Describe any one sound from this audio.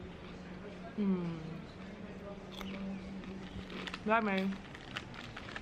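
A young woman hums with her mouth full.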